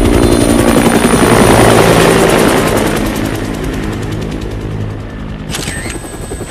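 A helicopter's rotor thumps loudly overhead and fades.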